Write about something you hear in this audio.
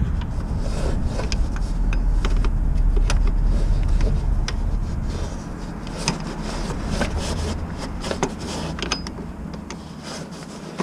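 A metal tool clicks and clinks against engine parts close by.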